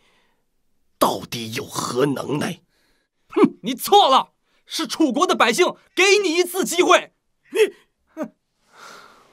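A younger man speaks with animation, close by.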